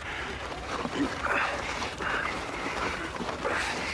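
Boots crunch on packed snow close by.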